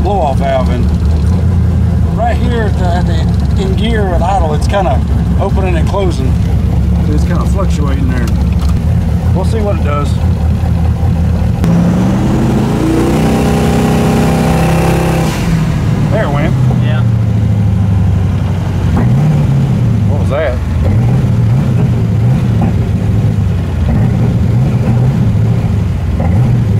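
A car engine hums steadily inside the vehicle.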